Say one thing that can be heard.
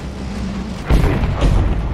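A tank cannon fires with a heavy blast.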